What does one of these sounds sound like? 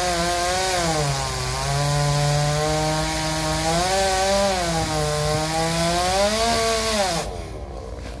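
A chainsaw engine whines and revs while cutting a tree trunk.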